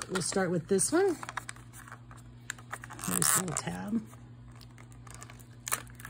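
A plastic wrapper crinkles in the hands.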